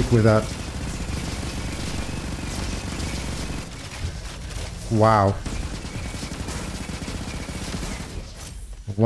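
A game gun fires rapid bursts of shots.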